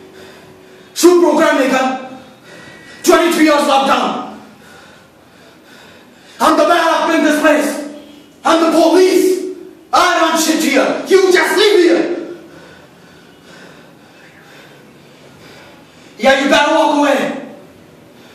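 A young man declaims loudly in bursts, with pauses between lines, in an echoing room.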